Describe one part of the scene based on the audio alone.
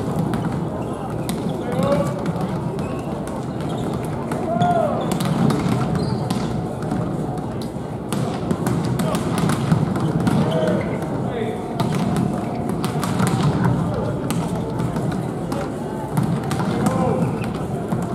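Volleyballs thump against forearms and hands again and again.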